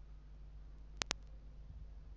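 Sharp clicks sound as items are picked up.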